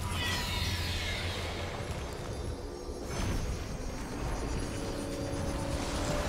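A magical spell effect shimmers and whooshes.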